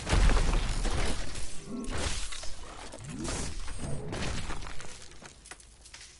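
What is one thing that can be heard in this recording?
Flames crackle and roar nearby.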